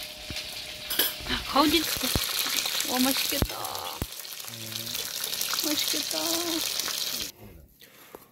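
Dumplings sizzle as they fry in hot oil.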